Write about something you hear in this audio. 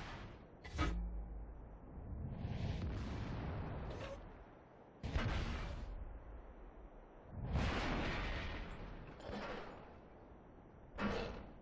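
Tank cannons fire with heavy booms.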